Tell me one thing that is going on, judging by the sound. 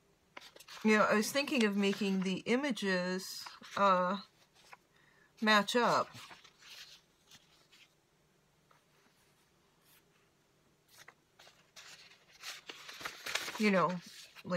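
Sheets of paper rustle as they are flipped over.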